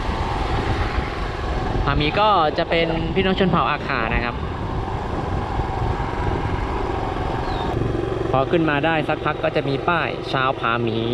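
Wind rushes loudly past a moving motorbike.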